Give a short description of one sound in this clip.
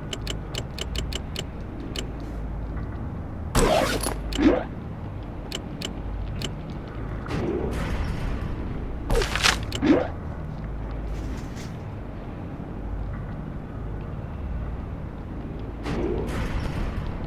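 Soft menu clicks tick as a list is scrolled.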